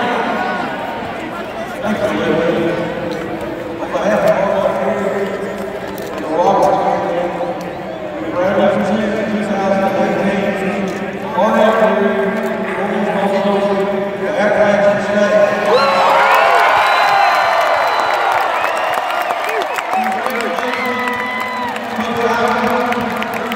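A middle-aged man speaks through a microphone and loudspeakers in a large echoing arena.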